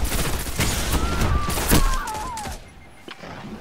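An explosion blasts in a video game.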